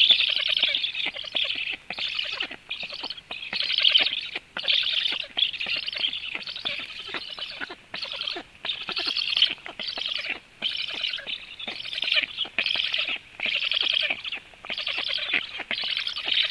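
A black stork chick begs with wheezy, rasping calls at the nest.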